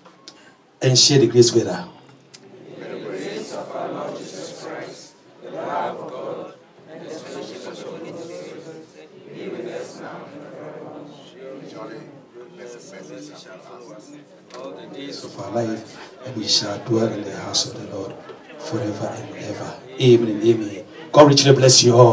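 A man prays aloud with fervour through a microphone and loudspeakers in an echoing hall.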